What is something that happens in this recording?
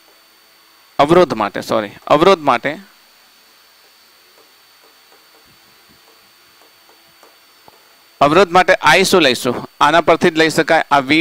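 A man speaks in a clear teaching voice close to the microphone.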